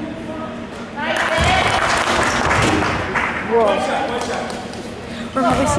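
Spectators shout and cheer loudly in a large echoing gym.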